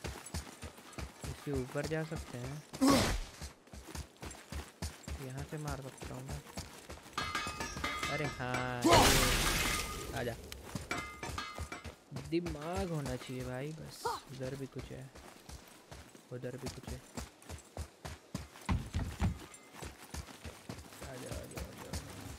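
Heavy footsteps run over the ground.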